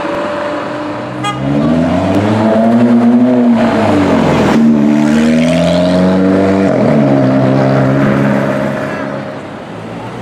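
A second sports car accelerates hard with a rising engine roar.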